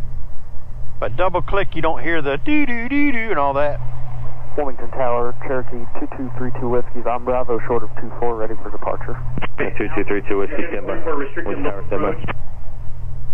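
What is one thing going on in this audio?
A man talks calmly over a headset radio.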